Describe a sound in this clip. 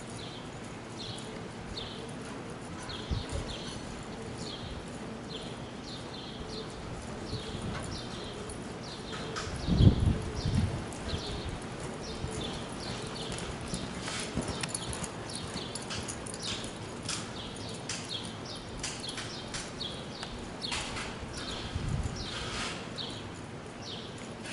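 A horse's tack jingles softly in time with its stride.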